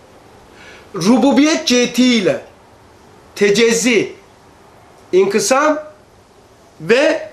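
An elderly man speaks with animation into a close microphone, in short bursts with pauses.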